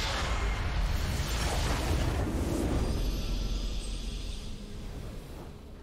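A large structure in a video game explodes with a deep booming rumble.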